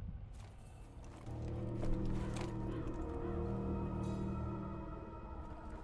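A heavy wooden chest lid creaks open.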